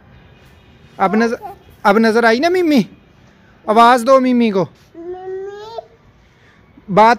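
A young child calls out loudly in a high voice close by.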